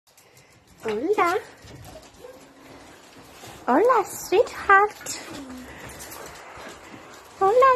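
Dogs whine and yelp excitedly close by.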